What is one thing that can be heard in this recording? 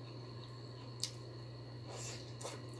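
A woman chews and smacks her lips close by.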